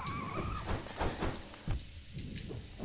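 Sharp blade slashes swish and strike in quick succession.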